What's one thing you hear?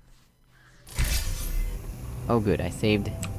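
A laser beam hums and hisses.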